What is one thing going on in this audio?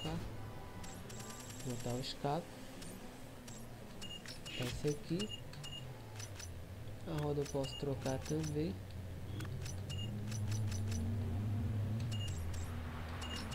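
Short electronic menu clicks and beeps sound again and again.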